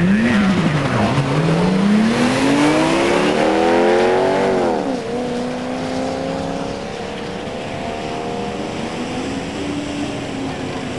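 A car engine roars as the car launches and speeds away, climbing in pitch through each gear.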